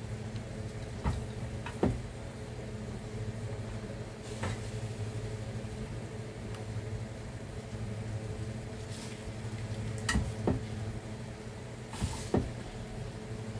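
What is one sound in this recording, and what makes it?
Metal tongs clink sharply against a pan and dish.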